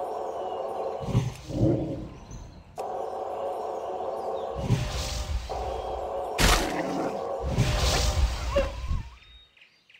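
Magic blasts hit with a loud whoosh.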